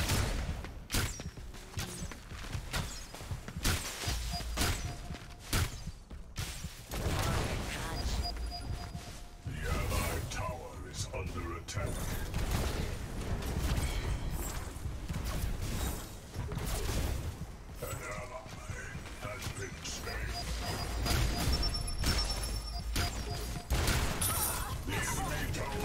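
Gunfire and blasts crackle in quick bursts.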